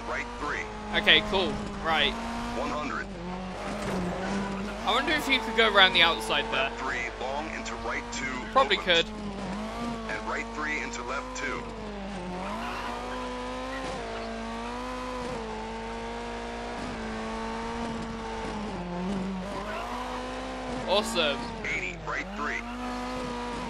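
Tyres screech sharply through tight corners.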